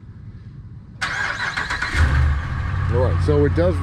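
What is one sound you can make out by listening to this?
A truck engine starts up and rumbles at idle.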